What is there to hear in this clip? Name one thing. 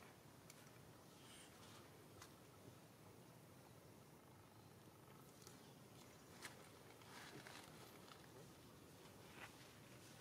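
A young monkey chews and nibbles food softly close by.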